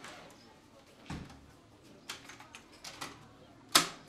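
Buttons on a stereo click.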